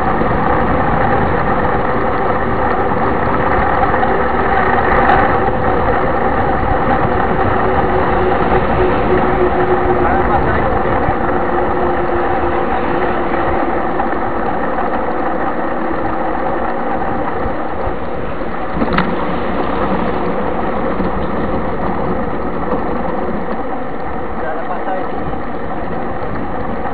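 Wind buffets loudly against a moving bicycle.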